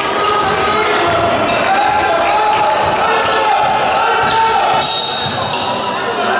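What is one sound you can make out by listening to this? Basketball shoes squeak on a hardwood court in a large echoing hall.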